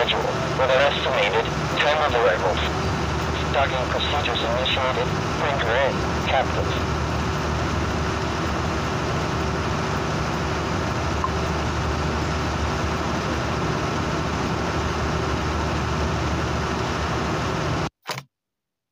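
A large ship's engine rumbles steadily.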